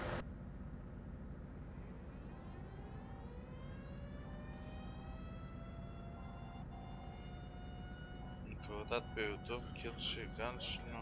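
A truck engine drones steadily, its whine slowly rising in pitch.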